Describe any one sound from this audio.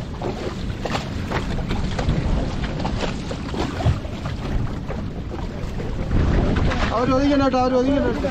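A wet fishing net rustles and slaps as it is hauled in.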